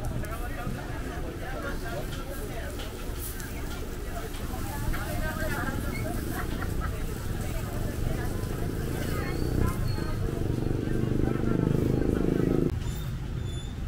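Sausages sizzle on a hot grill.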